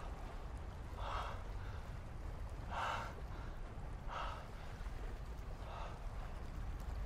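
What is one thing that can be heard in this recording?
A man breathes heavily in pain, close by.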